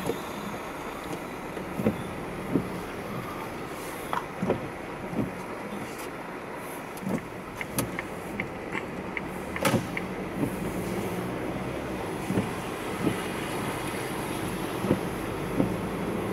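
A car's engine and road noise rumble, heard from inside the car.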